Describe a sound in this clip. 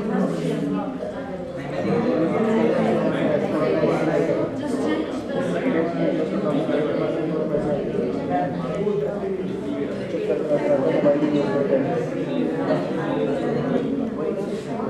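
Many young people chatter at once in a room, in a steady babble of voices.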